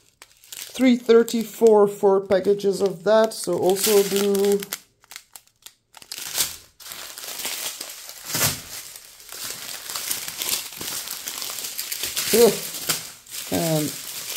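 A plastic bag crinkles and rustles close up.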